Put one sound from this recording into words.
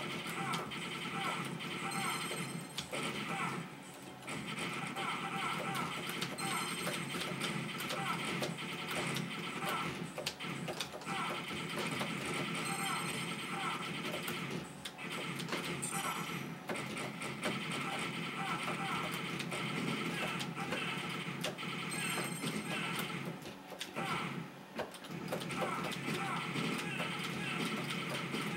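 Electronic gunshots and blasts ring out from an arcade game.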